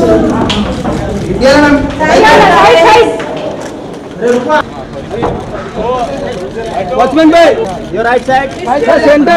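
Several men and women call out and talk over one another nearby.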